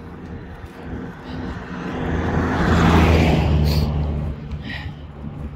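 A car drives past on a nearby road.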